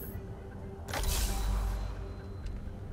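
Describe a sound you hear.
A metal case opens with a rush of hissing air.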